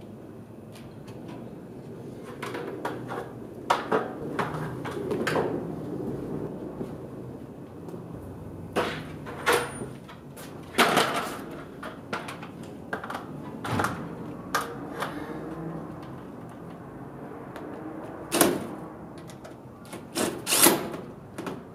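Metal clanks and knocks against a hollow panel.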